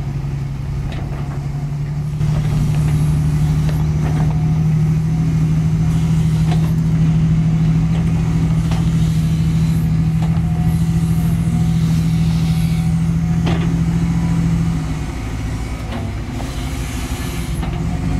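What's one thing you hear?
An excavator bucket clanks and scrapes through soil.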